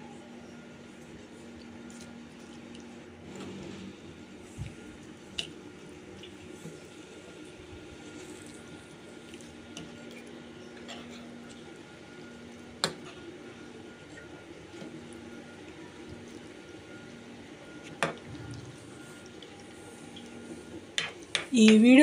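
A metal spoon scrapes and clinks against a pan as thick food is stirred.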